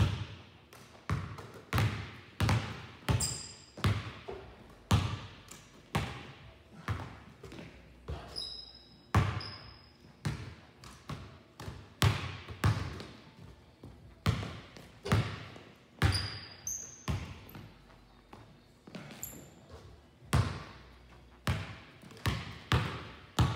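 Basketballs bounce on a hardwood floor, echoing through a large hall.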